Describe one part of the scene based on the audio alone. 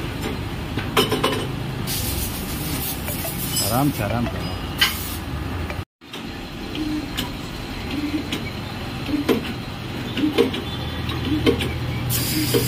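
Metal parts clank against each other now and then.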